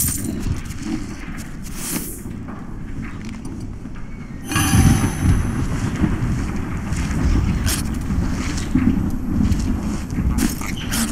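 Blows land in a fierce fight with monsters.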